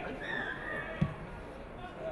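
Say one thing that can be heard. A rugby ball is kicked with a sharp thud.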